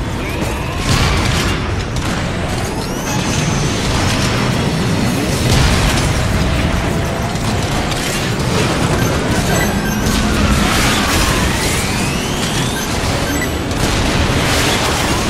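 Flying machines whine and whoosh overhead.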